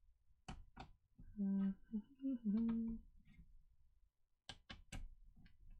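Small plastic parts click as a laptop is worked on.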